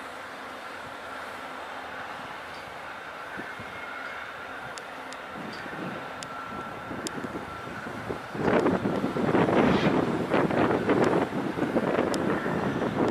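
A passenger train rumbles away along the tracks, fading into the distance.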